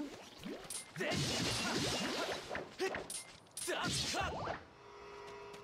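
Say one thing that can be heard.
A sword whooshes through the air in quick swings.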